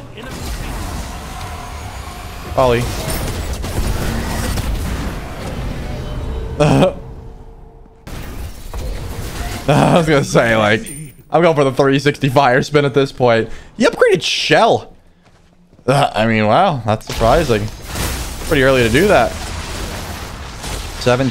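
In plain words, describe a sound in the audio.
Game sound effects whoosh and blast.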